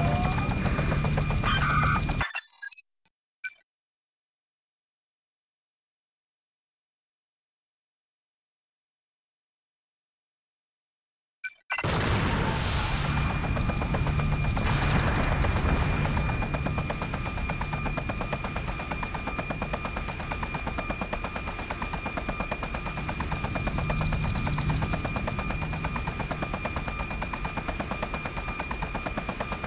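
A helicopter's rotor thuds steadily.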